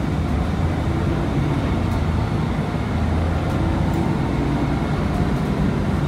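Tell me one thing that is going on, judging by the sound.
The bus rattles softly as it drives.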